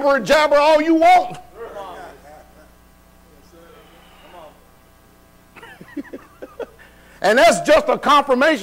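A man preaches loudly and passionately through a microphone in an echoing hall.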